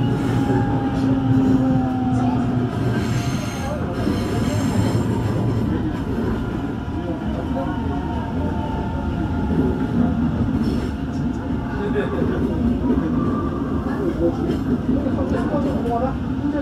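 An electric commuter train rumbles along the track, heard from inside a carriage.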